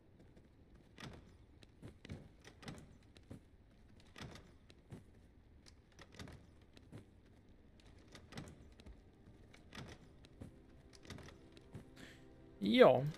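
Items click softly as they are moved in a game inventory.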